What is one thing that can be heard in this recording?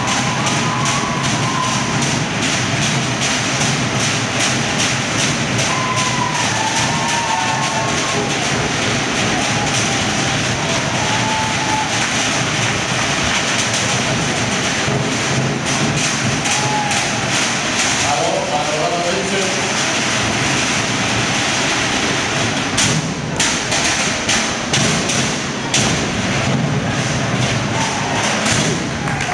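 Drummers pound a fast, steady beat on drums.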